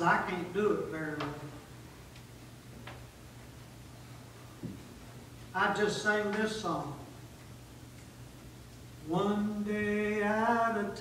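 A middle-aged man speaks with animation, in short bursts with pauses.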